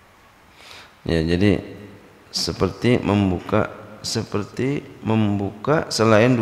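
A man speaks in a slow, chanting voice through a microphone.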